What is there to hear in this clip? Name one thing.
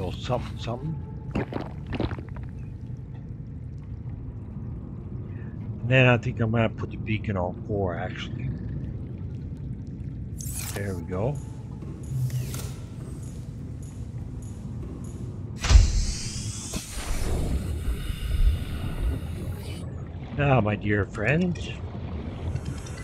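A man talks calmly into a close microphone.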